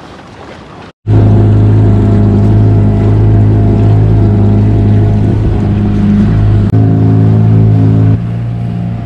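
The outboard motor of a small boat runs at speed.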